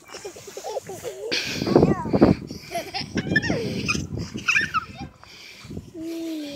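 A young child laughs and squeals close by.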